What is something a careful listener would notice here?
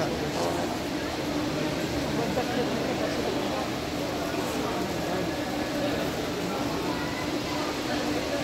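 Many people chatter in a large, echoing hall.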